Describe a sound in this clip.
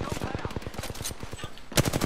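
A gun clicks and clacks as it is reloaded.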